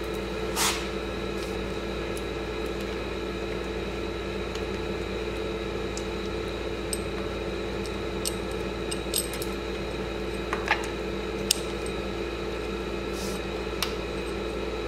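Small metal parts click and clink against an engine.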